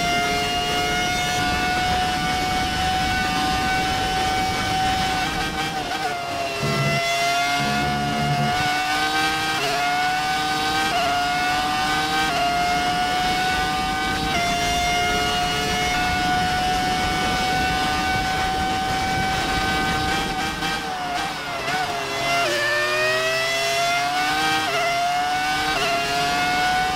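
A racing car engine screams at high revs, dropping in pitch under braking and climbing again through quick gear shifts.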